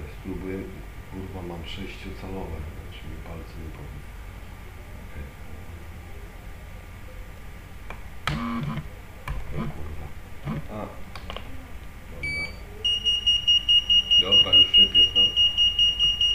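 A man talks with animation into a nearby microphone.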